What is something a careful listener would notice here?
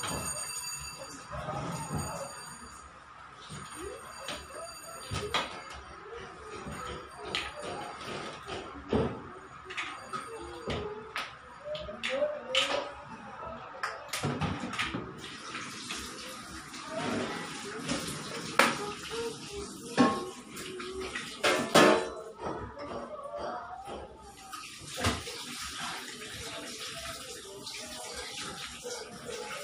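Metal pots and dishes clink and clatter.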